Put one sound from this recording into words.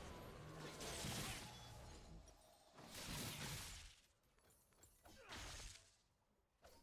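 Magic blasts and impacts crackle in a game fight.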